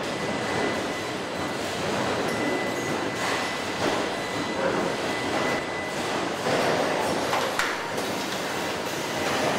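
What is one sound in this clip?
A robot arm whirs as it moves.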